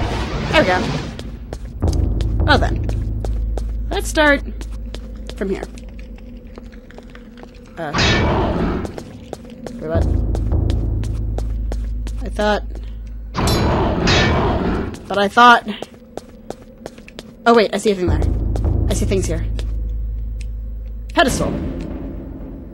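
A young woman talks calmly into a microphone.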